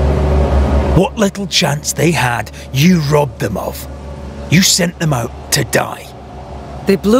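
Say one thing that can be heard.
A man speaks angrily and accusingly.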